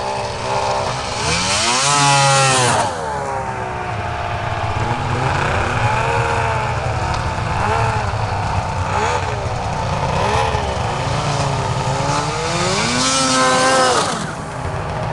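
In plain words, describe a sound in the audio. A snowmobile engine revs loudly as it passes close by.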